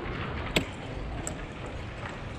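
A hand presses a game clock button with a sharp click.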